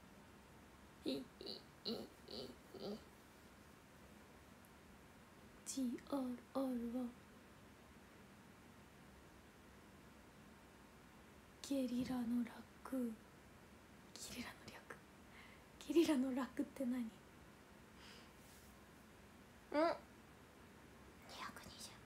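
A young woman speaks casually in short bursts close to a microphone.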